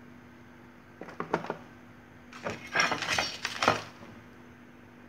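Paper rustles and crinkles close by.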